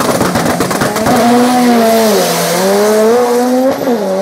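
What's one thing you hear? Two race cars roar away into the distance.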